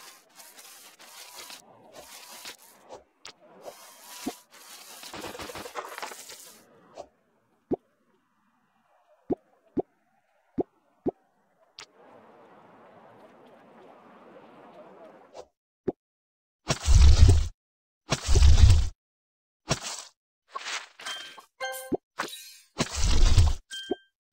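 Game sound effects chime and click as menus open.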